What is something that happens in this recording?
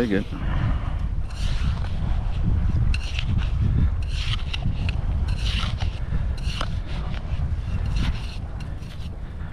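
A hand trowel scrapes and digs into dry sand.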